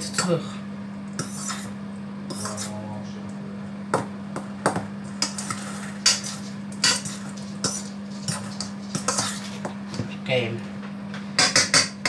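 A whisk clinks and scrapes against a metal bowl.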